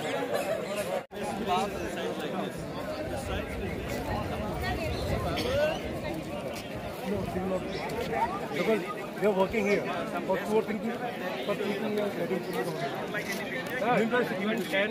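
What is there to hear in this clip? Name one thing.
A crowd of adult men and women chatters outdoors all around.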